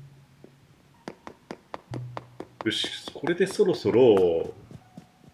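Light footsteps tap quickly across a hard floor.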